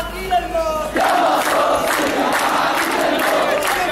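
A large crowd chants together loudly outdoors.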